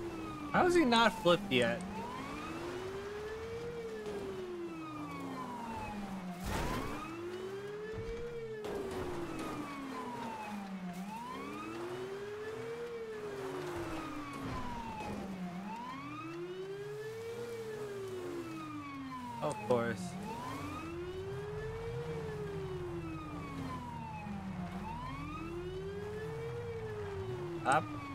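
A police siren wails steadily, rising and falling over and over.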